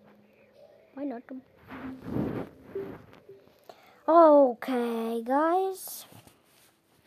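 A young boy talks loudly and with animation close to a microphone.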